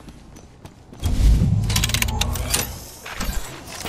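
A machine rumbles and roars loudly as it launches.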